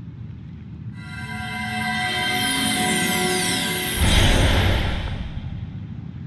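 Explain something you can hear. A magical shimmering chime rises and swells.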